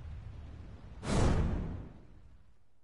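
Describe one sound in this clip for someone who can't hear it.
A sharp whoosh bursts out and fades.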